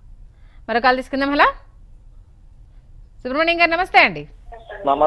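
A young woman speaks clearly into a microphone.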